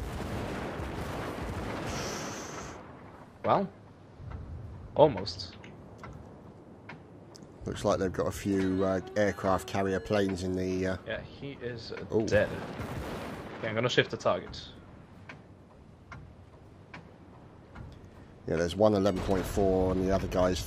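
Heavy naval guns fire in loud booming blasts.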